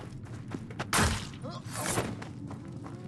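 Bodies scuffle and thud in a sudden struggle.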